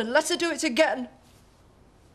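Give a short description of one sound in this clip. A middle-aged woman speaks quietly and earnestly.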